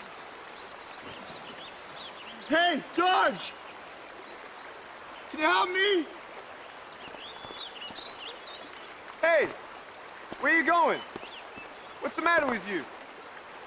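A river trickles over rocks.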